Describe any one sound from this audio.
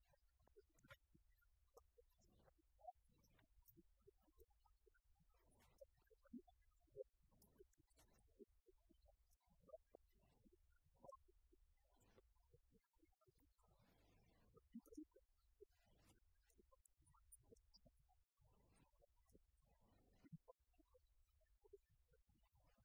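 A man lectures calmly in a large echoing hall, heard from a distance.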